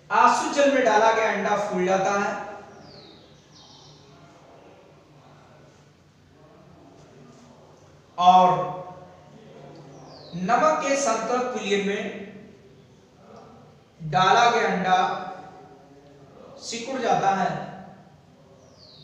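A man explains something in bursts, speaking clearly in a room with a slight echo.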